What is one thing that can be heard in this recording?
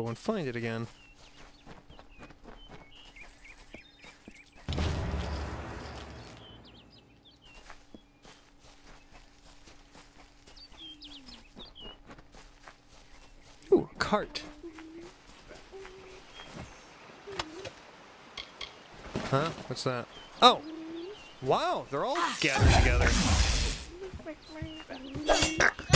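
Footsteps run over soft grass.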